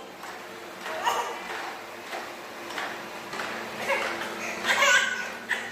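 A baby babbles and squeals nearby.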